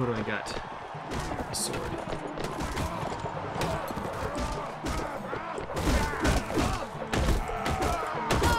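Weapons clash and clang in a melee.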